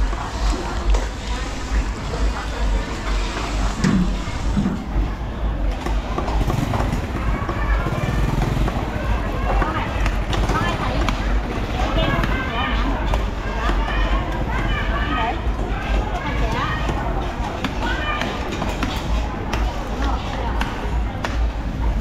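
Several women chatter nearby in a busy crowd.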